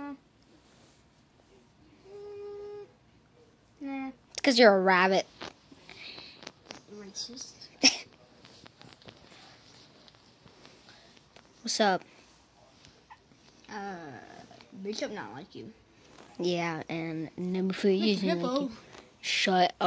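Soft fabric rustles as plush toys are handled.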